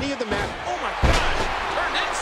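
A body slams hard onto a wrestling mat.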